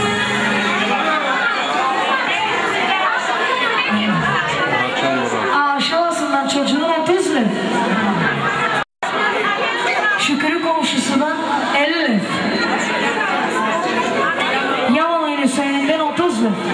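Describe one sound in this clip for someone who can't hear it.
A crowd of people chatter in a large room.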